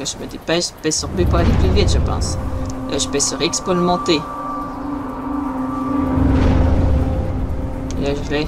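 Ghostly creatures swoop past with a low rushing whoosh.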